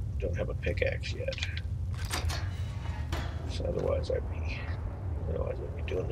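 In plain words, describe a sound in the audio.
A metal gate unlocks and creaks open.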